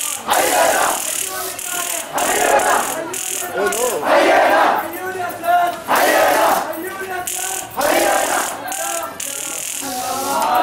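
A large crowd chants loudly in rhythmic bursts outdoors.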